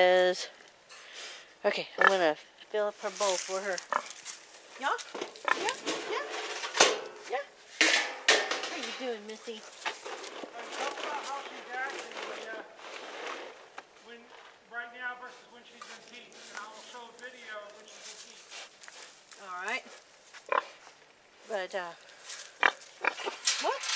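A pig snuffles and grunts.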